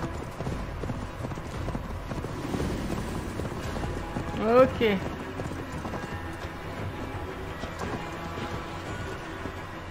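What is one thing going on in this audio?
A horse's hooves thud on soft ground at a gallop.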